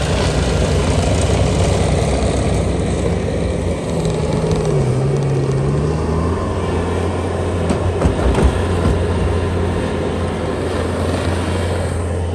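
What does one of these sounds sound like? A skid steer loader's engine rumbles.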